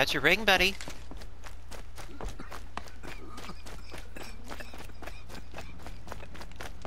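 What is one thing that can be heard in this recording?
Footsteps run on dirt.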